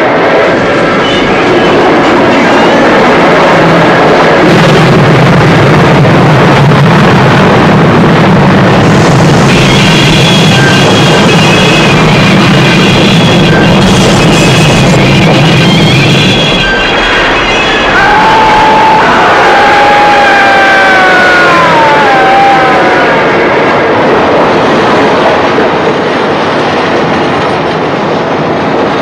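A steam locomotive chugs and rumbles along the tracks.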